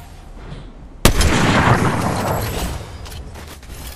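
A sniper rifle fires a single loud shot that rings out.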